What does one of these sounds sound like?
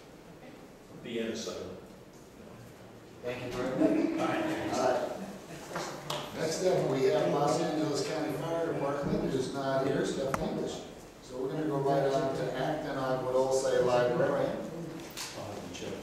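A man speaks into a microphone in a room with some echo.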